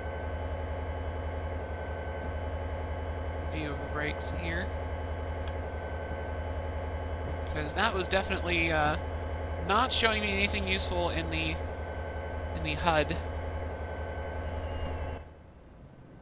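A diesel locomotive engine drones steadily.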